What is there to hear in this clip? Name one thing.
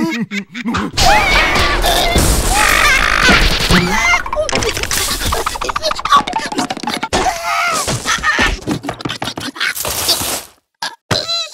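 A cartoon worm dances wildly.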